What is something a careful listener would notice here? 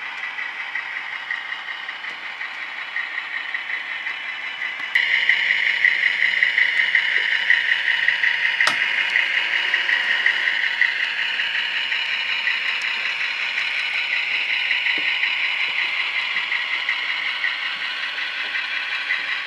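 A small electric motor whines steadily as a model train rolls along the track.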